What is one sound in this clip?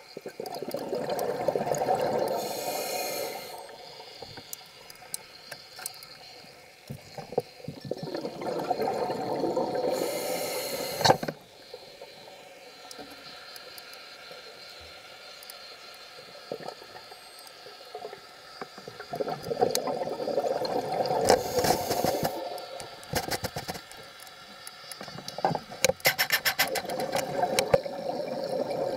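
Bubbles from a diver's breathing gurgle and rush in bursts underwater.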